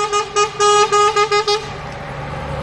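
A bus horn toots several times in short beeps.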